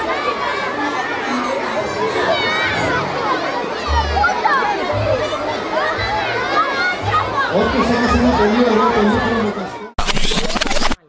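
Music with singing plays loudly through loudspeakers.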